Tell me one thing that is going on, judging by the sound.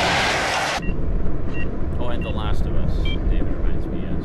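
Phone keys beep as a number is dialled.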